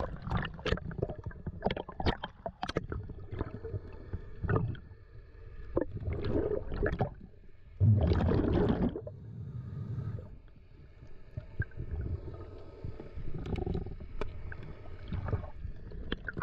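Water rushes and bubbles in muffled bursts underwater.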